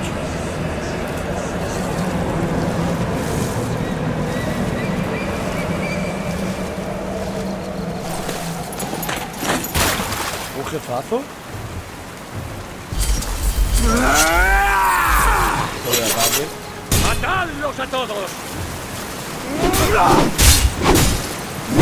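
A stream of water flows and splashes steadily.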